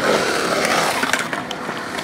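Skateboard wheels roll and rumble across a concrete bowl.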